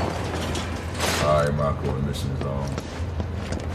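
A man speaks casually into a close microphone.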